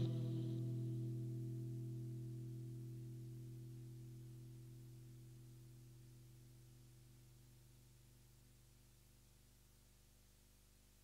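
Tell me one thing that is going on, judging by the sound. A keyboard plays a low sustained chord that slowly fades away.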